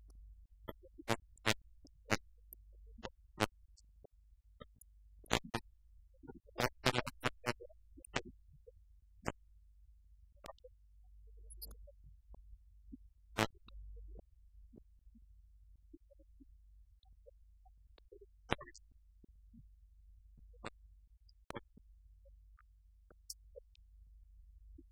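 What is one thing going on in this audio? Keys click sharply on laptop keyboards.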